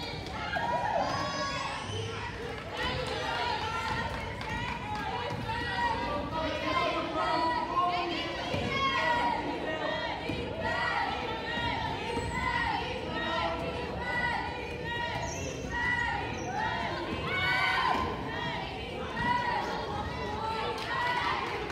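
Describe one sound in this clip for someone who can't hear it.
Voices call out and echo in a large gym.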